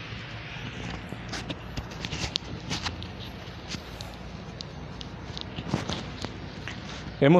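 Small knocks and rustles sound close by as a man handles something.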